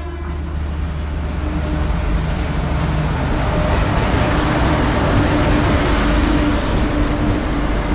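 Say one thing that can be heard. A train rumbles and clatters past on the rails, growing louder.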